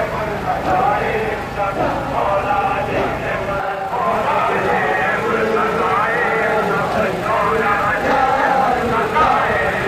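A man chants loudly through a loudspeaker.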